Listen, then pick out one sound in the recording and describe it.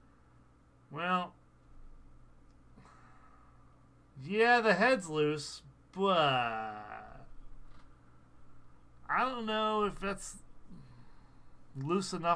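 A man talks with animation close to a microphone, in short bursts.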